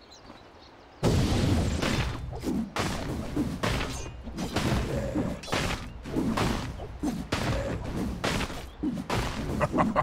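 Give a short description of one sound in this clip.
Blades clash and magic blasts burst in a game fight.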